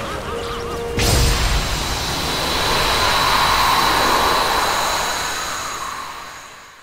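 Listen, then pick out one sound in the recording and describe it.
A loud magical burst whooshes and crashes.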